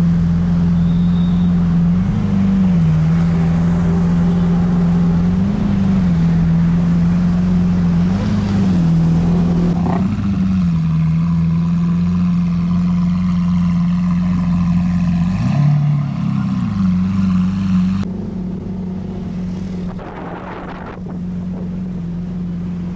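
A powerful car engine rumbles deeply and revs up in short bursts.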